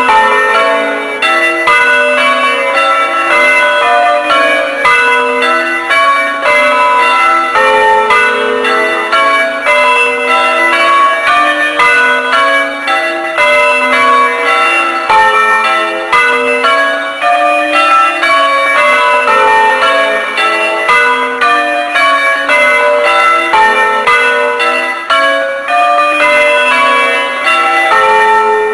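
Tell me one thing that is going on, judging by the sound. Large bells ring loudly and continuously, one after another.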